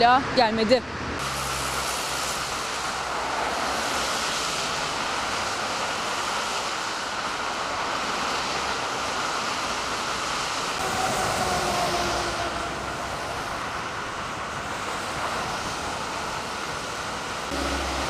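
Traffic hisses past on a wet road.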